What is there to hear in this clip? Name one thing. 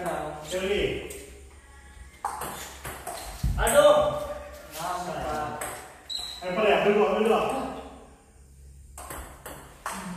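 A ping pong ball clicks back and forth off paddles and a table.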